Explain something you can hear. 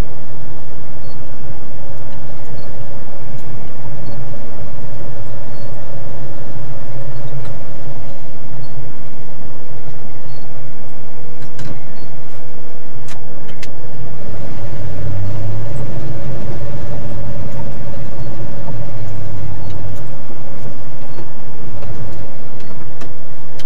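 Windscreen wipers sweep back and forth across the glass.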